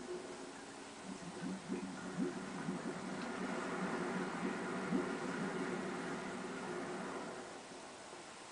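A burst of steam hisses and rumbles.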